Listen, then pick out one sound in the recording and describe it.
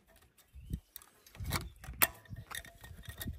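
Thin wire rattles and scrapes in a hand.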